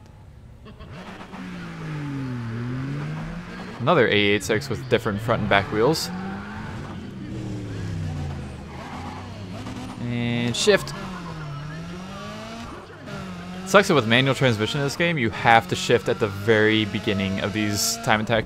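A car engine idles and revs, then roars as the car speeds off.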